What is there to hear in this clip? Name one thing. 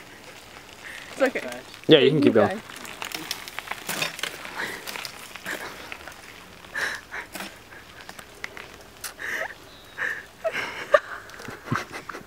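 A young person talks and calls out nearby outdoors.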